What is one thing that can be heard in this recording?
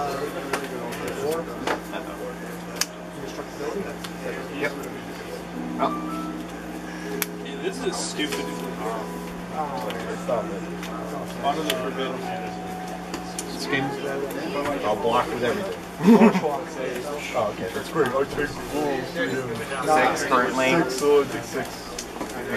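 Playing cards are laid and slid on a table with soft taps.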